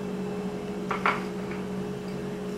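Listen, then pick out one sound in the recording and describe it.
A glass knocks against a hard counter.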